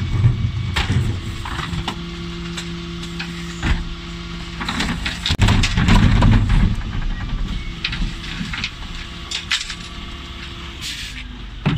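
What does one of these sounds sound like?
A bin lift mechanism whirs as it tips bins.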